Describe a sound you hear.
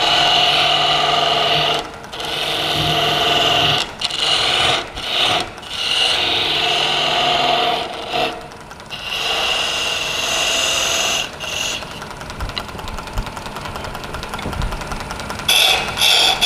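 A wood lathe whirs steadily as it spins.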